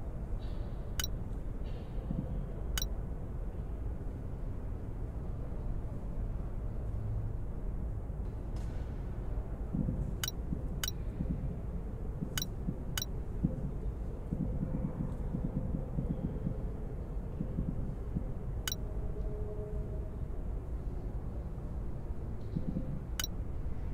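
Short, sharp clicks sound now and then as puzzle tiles switch over.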